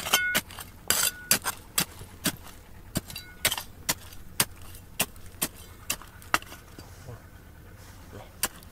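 A small metal trowel scrapes and knocks into stony dirt in quick, repeated strokes.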